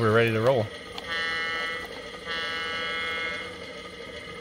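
A model locomotive bell rings quickly.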